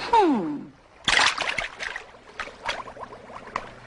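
Water splashes as hands scoop and splash it in a shallow pool.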